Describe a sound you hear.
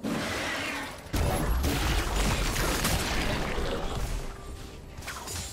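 Game spells blast and crackle in a fast fight.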